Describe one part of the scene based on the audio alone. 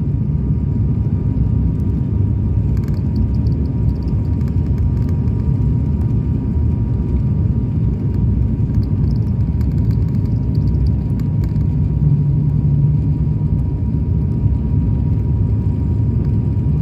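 Aircraft engines roar steadily in the cabin.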